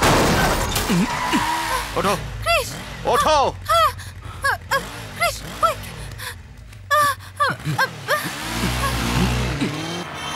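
A motorcycle engine idles and revs.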